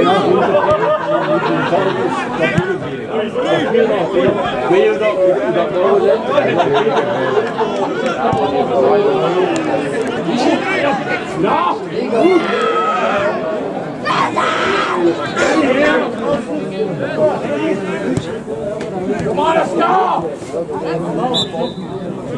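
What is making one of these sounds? Footballers shout and call to each other across an open field.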